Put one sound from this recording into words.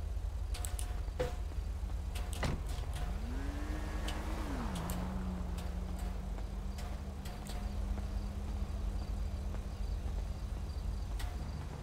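Footsteps tap on asphalt.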